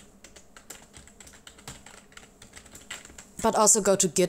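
Keys on a keyboard click rapidly as someone types.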